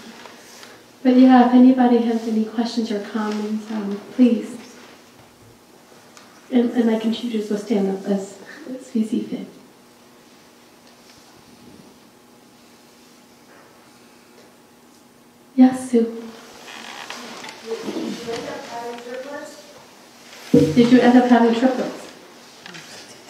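A young woman speaks calmly into a microphone, heard through a loudspeaker in a room.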